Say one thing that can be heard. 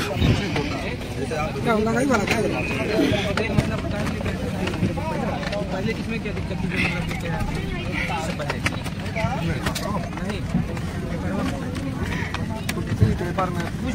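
Many men and women chatter nearby in a crowd.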